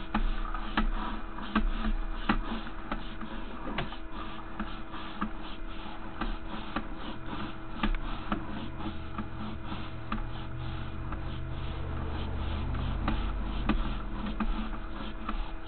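A small crawler motor whirs steadily while rolling through a pipe.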